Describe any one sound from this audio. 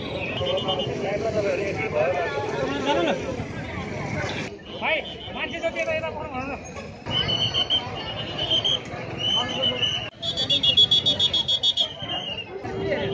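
A crowd of men talk and shout excitedly nearby, outdoors.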